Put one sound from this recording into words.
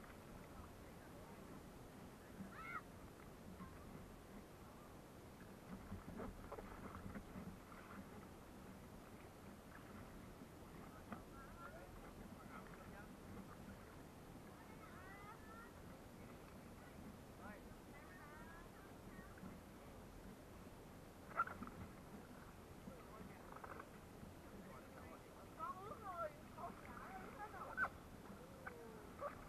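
Water laps gently against the side of a boat.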